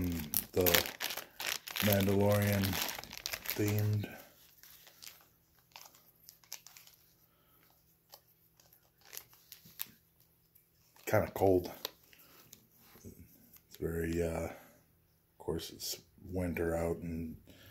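A plastic bag crinkles in a man's hands.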